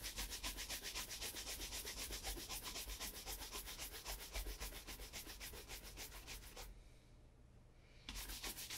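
A stiff brush scrubs a leather shoe with quick, rapid swishing strokes.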